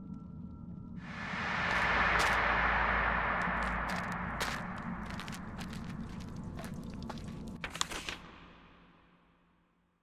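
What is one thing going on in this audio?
A magical whoosh swells and shimmers, then fades.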